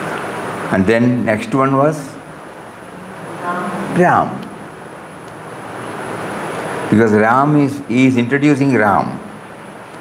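An elderly man speaks calmly and slowly into a close microphone.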